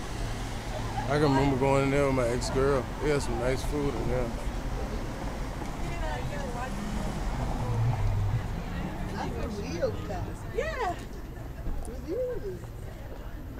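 Adult women talk and exclaim nearby, outdoors.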